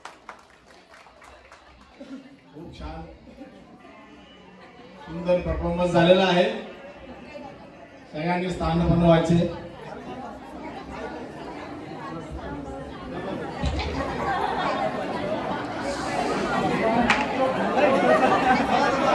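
A crowd of guests chatters in a large room.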